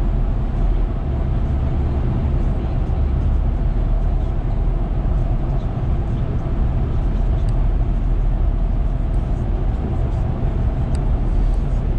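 A car's engine hums and its tyres roar steadily on a highway, heard from inside.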